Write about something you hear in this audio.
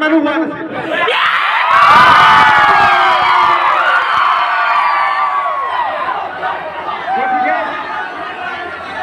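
A large crowd cheers and screams loudly.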